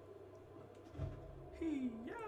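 A cloth glider snaps open with a thump.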